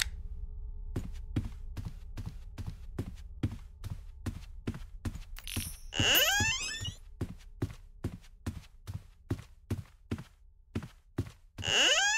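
Footsteps thud at a steady walking pace.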